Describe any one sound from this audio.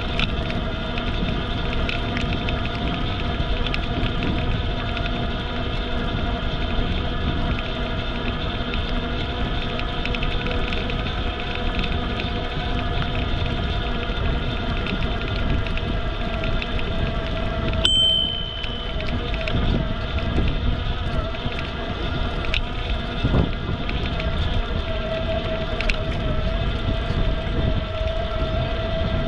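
Wind rushes steadily past while riding outdoors.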